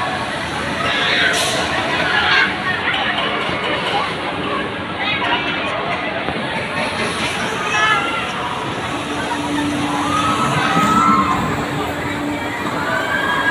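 Children squeal and shout on the spinning ride nearby.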